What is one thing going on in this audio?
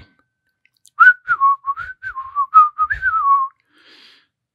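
A toy xylophone plays a short, tinkling run of notes.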